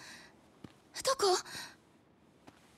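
A young woman calls out anxiously, close by.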